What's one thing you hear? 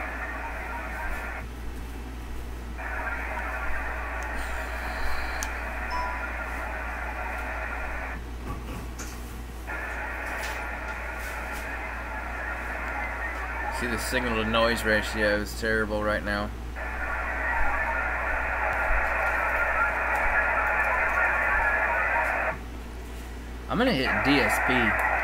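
A radio data signal hisses in steady bursts through a loudspeaker, with short pauses between them.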